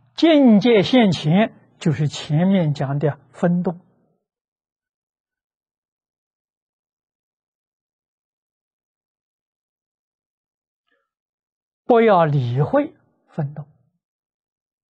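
An elderly man speaks calmly through a clip-on microphone, with long pauses.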